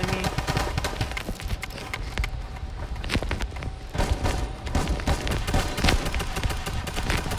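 Game building pieces clack rapidly into place, with dense thumps and knocks.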